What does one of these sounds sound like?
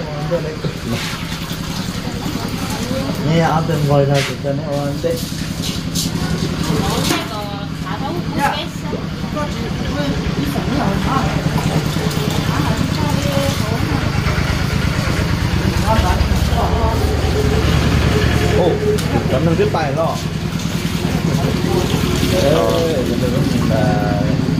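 Cooked rice thuds softly as it is scooped into a metal pot.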